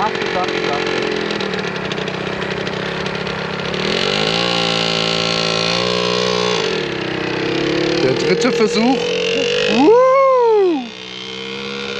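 A motorcycle engine idles and revs up close.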